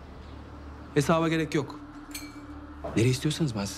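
A man speaks calmly and seriously close by.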